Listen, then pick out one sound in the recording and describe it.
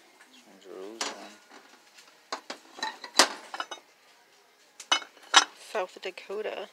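Ceramic dishes clink and knock together as they are handled.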